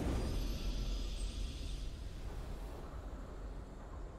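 A triumphant game fanfare rings out and slowly fades.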